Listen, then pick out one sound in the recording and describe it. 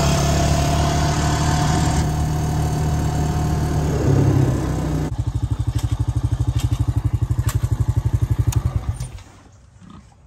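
An engine runs loudly and steadily, then cuts off.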